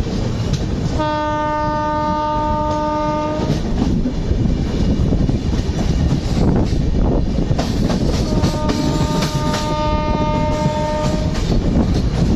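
A train horn sounds twice with long, steady blasts.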